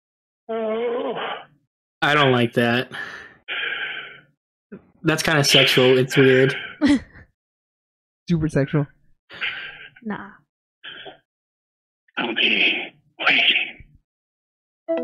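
Men and women laugh over microphones and an online call.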